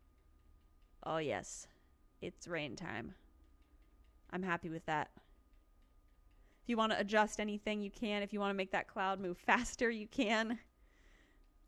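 A woman talks calmly into a microphone.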